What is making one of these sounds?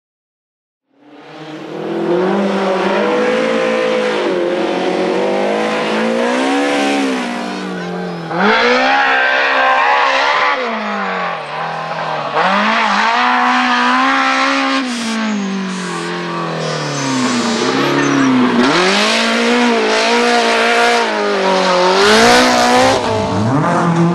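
A rally car engine revs hard, rising and falling in pitch as the car races past.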